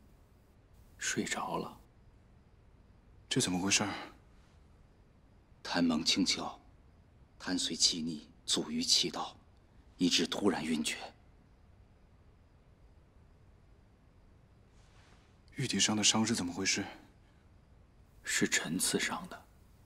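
A man answers calmly.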